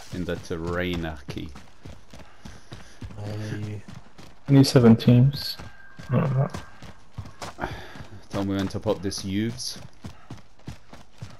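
Footsteps thud quickly over grass and gravel.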